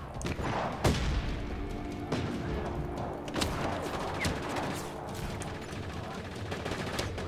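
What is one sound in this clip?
Gunshots crack repeatedly.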